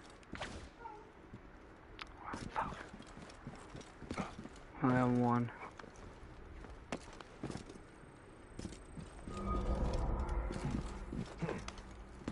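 Footsteps and scrapes sound on rock.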